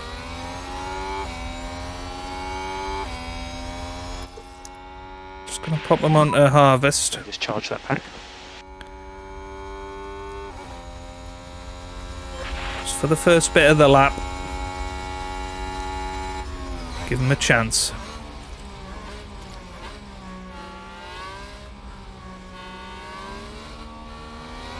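A racing car engine whines at high revs, shifting gears.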